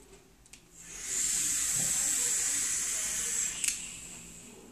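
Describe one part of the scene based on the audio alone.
Air hisses as a man draws hard on a pipe.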